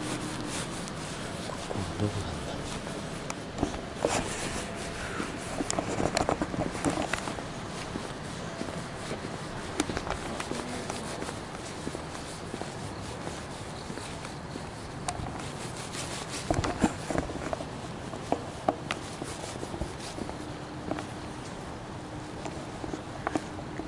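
A young man talks quietly close to the microphone.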